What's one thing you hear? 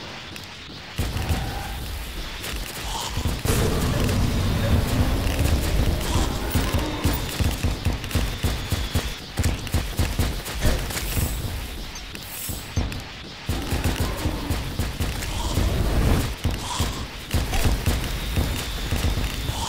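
Rapid explosions and shots boom and crackle in a fast game battle.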